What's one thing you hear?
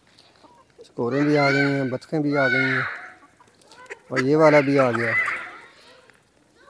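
A rooster crows loudly nearby, several times.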